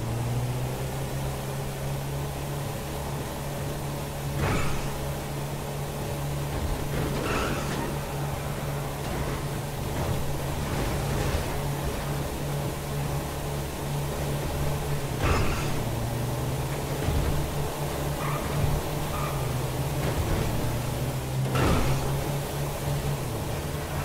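A van engine hums steadily as it drives along.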